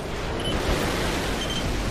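Jet thrusters roar in a video game.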